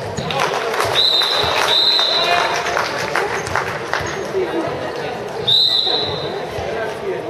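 A referee's whistle blows shortly.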